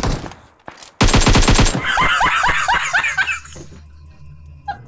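A young man laughs loudly and excitedly close to a microphone.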